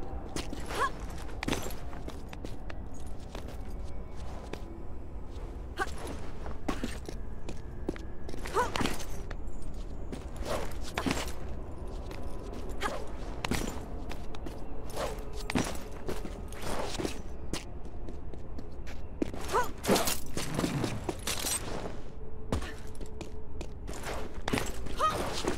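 Hands grab and slap against stone ledges.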